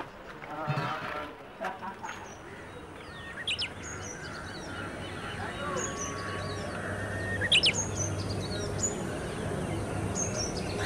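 Men talk in low voices nearby.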